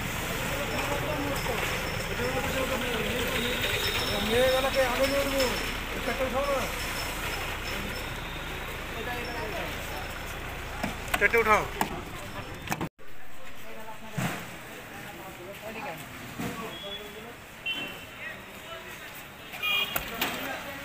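Men talk in lively voices nearby.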